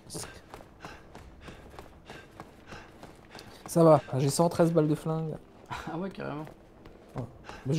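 Quick footsteps run over a hard floor.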